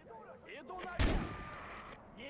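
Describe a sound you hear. A pistol fires a single loud shot.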